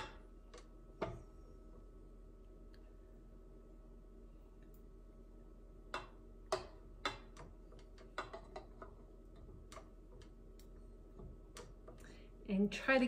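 Metal clinks and clicks as a mixing bowl is fitted onto a stand mixer.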